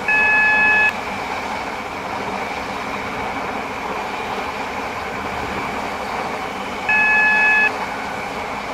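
A warning tone beeps in a train cab.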